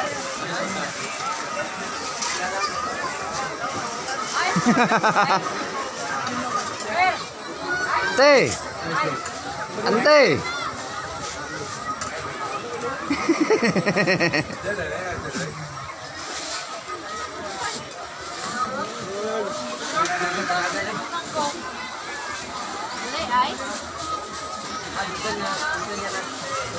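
A crowd of young people chatters and calls out all around, close by.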